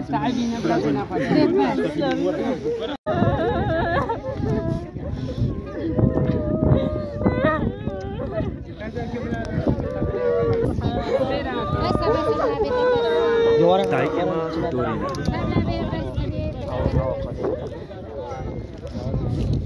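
A crowd of men and women talk and cry all around.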